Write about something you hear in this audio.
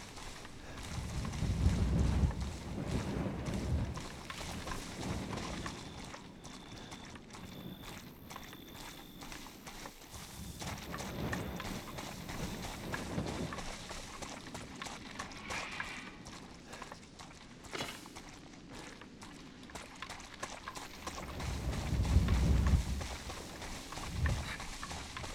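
Footsteps crunch through wet grass and leaves.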